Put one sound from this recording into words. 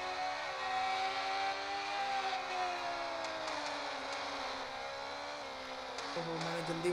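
Motorcycle engines whine at high revs, shifting pitch as gears change.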